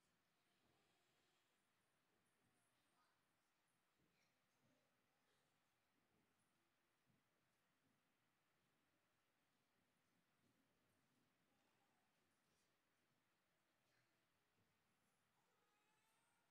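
Young children murmur and shuffle faintly in a large hall.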